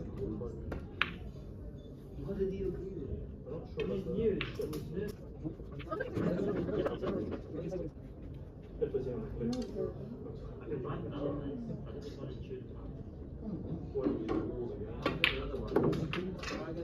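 Snooker balls knock together on a table.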